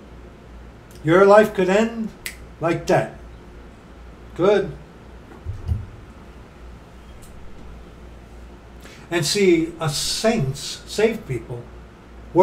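A middle-aged man speaks calmly and close to a microphone, pausing between phrases.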